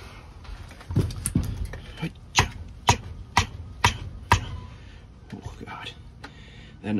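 A hatchet chops into wood with sharp knocks.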